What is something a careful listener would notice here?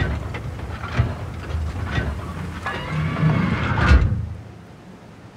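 A tank engine rumbles and its tracks clank as it drives.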